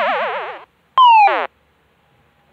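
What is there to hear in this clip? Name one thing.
A short falling electronic tone sounds.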